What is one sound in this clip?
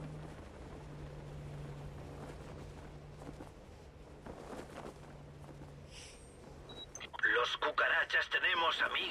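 Wind rushes steadily past a billowing parachute.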